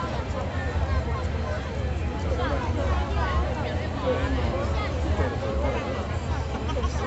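A large crowd chatters and cheers outdoors across the water.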